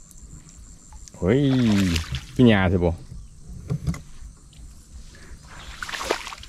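A dog rustles through wet grass.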